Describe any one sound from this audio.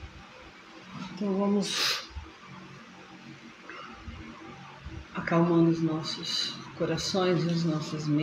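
A man prays aloud in a fervent voice, heard through a microphone.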